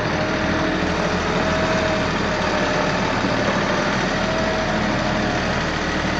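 Tractor tyres crunch over gravel.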